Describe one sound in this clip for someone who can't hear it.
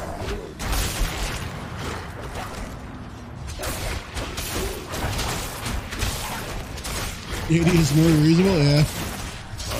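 Spell blasts and weapon hits crash and whoosh in quick bursts.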